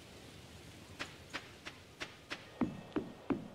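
Quick footsteps tap on wooden boards.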